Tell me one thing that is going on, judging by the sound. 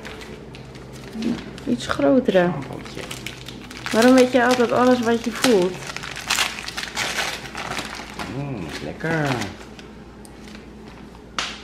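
Wrapping paper crinkles and rustles close by as it is torn open.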